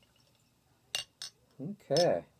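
A glass bottle is set down on a table.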